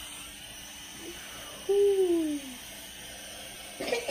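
A young boy blows into a balloon.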